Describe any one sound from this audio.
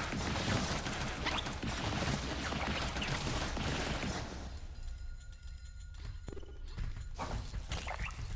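Video game attacks burst and crackle in quick succession.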